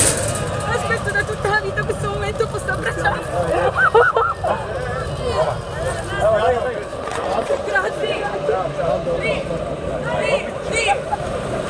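A crowd chatters and calls out nearby.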